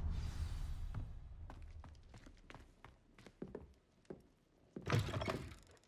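Footsteps tread on wooden stairs and floorboards.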